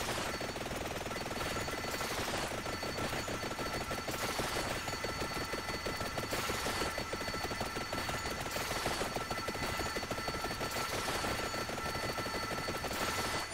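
Fireballs whoosh past in bursts.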